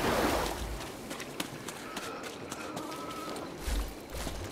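Footsteps thud quickly on dirt.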